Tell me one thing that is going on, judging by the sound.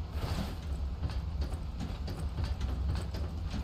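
Quick footsteps run across a wooden floor.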